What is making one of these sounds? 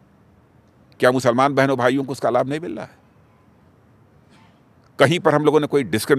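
An elderly man speaks calmly and earnestly into a close microphone.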